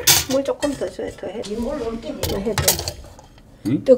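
A metal bowl knocks against a steel pot.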